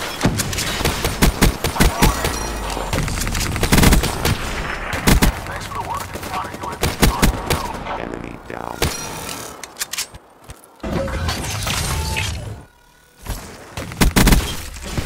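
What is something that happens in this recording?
Gunfire bursts out in rapid shots.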